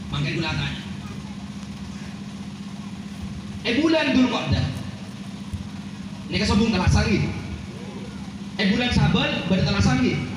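A man speaks with animation through a microphone over a loudspeaker, in bursts with pauses.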